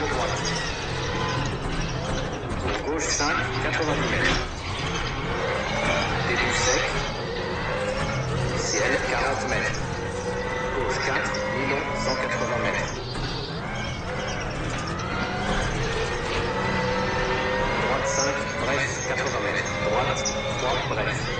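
A man speaks with animation into a headset microphone.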